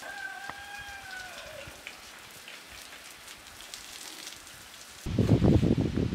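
Water sprays from a garden hose onto the ground.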